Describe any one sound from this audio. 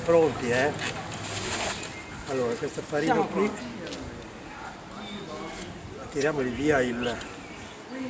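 An elderly man talks casually nearby.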